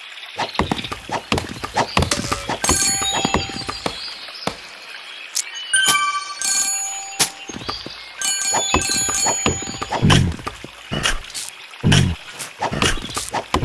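Cheerful game chimes and clicks sound as buildings are worked on.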